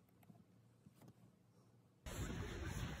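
Fingers tap on a laptop keyboard.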